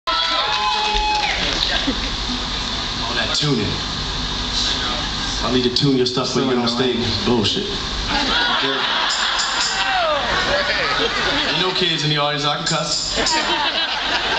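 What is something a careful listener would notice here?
A man sings into a microphone, heard through loudspeakers.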